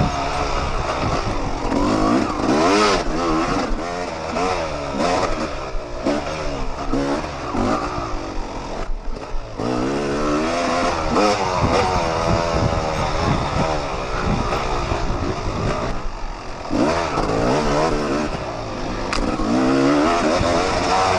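A dirt bike engine revs up and down close by, rising and falling in pitch.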